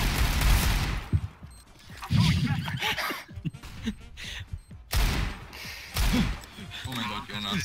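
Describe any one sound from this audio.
Pistol shots ring out sharply.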